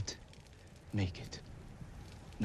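A man speaks quietly and gravely, close by.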